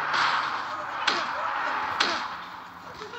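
A metal chair clangs as it strikes a wrestler.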